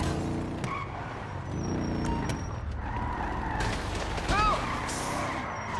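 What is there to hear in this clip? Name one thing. A car engine rumbles and revs at low speed.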